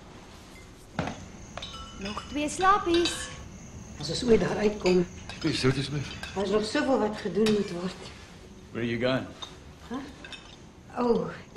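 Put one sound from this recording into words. Several people talk over a meal.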